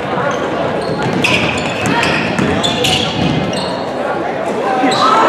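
Sneakers squeak sharply on a gym floor in an echoing hall.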